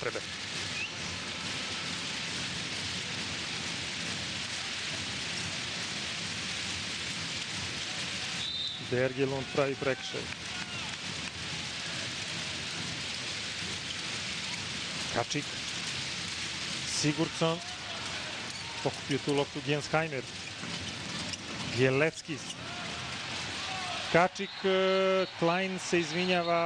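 A large crowd cheers and chants steadily in an echoing arena.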